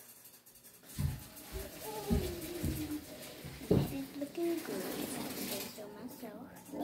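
A young girl talks close to the microphone.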